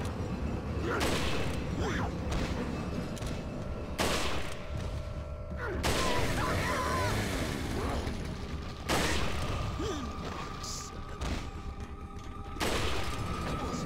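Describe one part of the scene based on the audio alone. Rifle shots ring out one at a time, with pauses between them.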